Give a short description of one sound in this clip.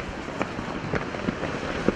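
A volcano rumbles as it erupts.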